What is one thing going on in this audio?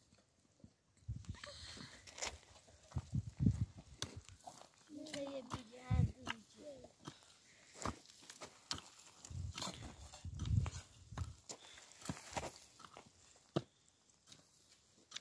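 A hoe digs and scrapes into dry, stony soil.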